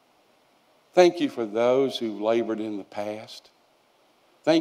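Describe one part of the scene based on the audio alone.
An elderly man speaks with feeling through a microphone.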